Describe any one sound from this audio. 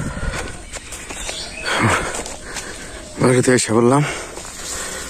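Footsteps crunch on a dry dirt path.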